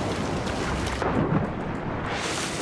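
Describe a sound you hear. A body dives into water with a splash.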